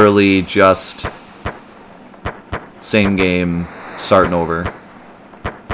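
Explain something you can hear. A young man talks casually, close to a microphone.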